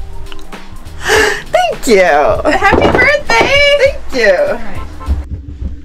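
A woman laughs loudly and with delight close by.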